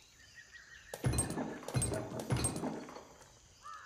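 Heavy stones crash and rumble as a stone wall is smashed.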